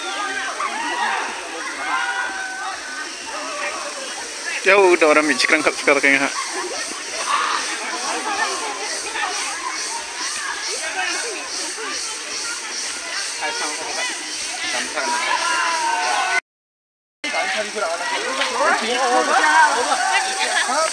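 Young men talk and shout outdoors.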